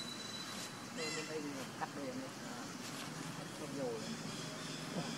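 A monkey gives short squeaky calls close by.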